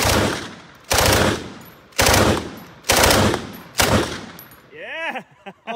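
A rifle fires loud shots in quick succession outdoors.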